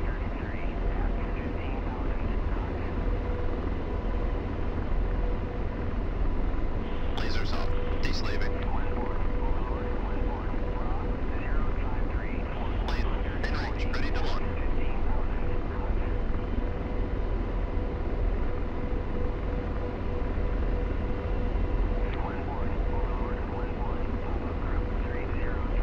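A helicopter engine and rotor drone steadily throughout.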